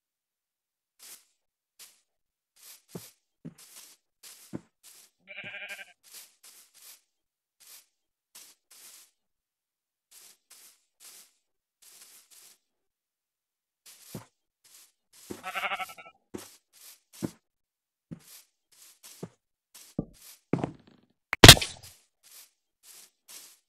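Footsteps rustle steadily over leaves.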